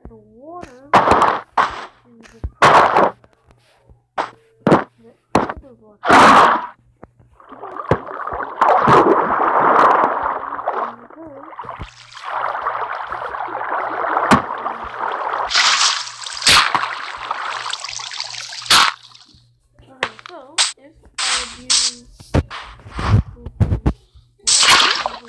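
Blocks thud as they are placed.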